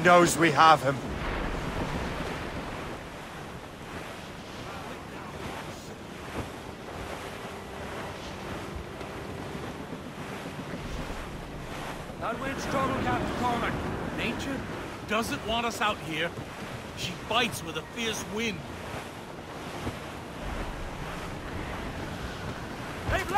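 Wind and waves rush steadily around a sailing ship.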